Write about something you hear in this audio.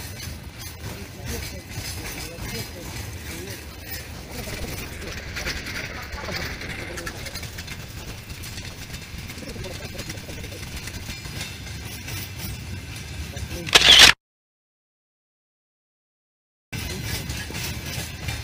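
A long train rumbles and clatters steadily past on the rails nearby.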